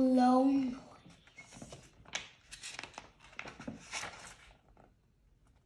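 Book pages rustle as a young boy turns them.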